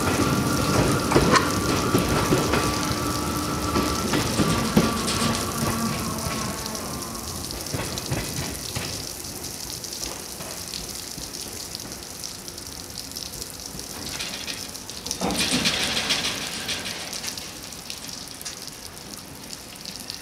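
Large rotating brushes whir and swish steadily outdoors.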